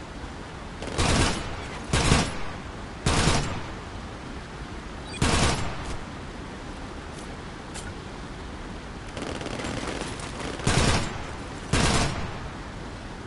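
A pistol fires single shots.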